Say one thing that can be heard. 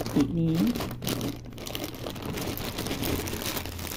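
Plastic packaging tears open.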